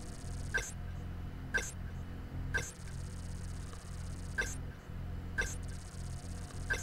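Short electronic blips sound every second or so.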